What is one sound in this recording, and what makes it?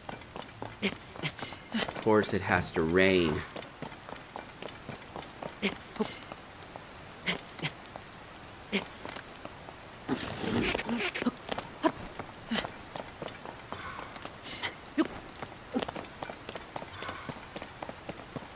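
Hands and feet scrape and tap on rock while climbing.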